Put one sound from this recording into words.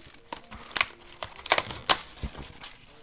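Playing cards slap down onto a pile with quick clicks.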